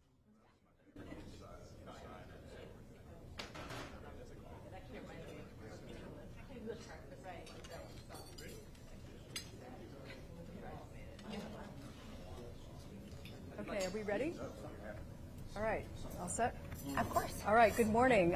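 A roomful of people murmur and chatter quietly.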